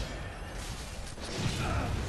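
A gun fires with a sharp bang.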